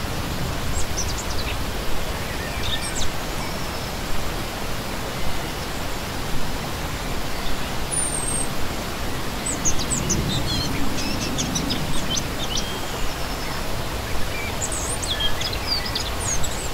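A stream rushes and splashes steadily over rocks.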